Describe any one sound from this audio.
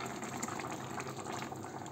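Liquid pours into a pot of food.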